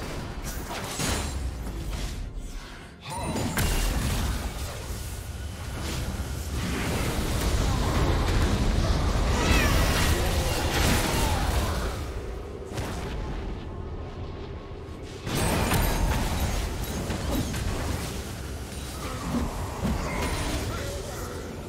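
Metallic hits and impacts clash during the fight.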